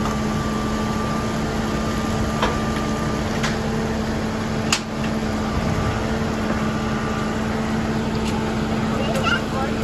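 A backhoe's digging arm clanks and scrapes.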